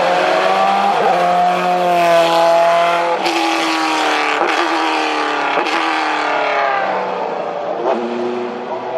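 A race car's gear changes crackle with sharp pops from the exhaust.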